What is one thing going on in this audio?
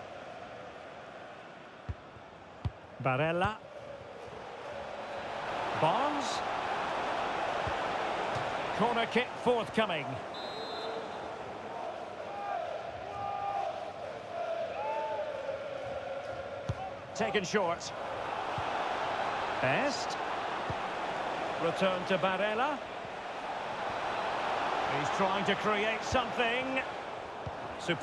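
A large stadium crowd roars, swelling and fading in waves.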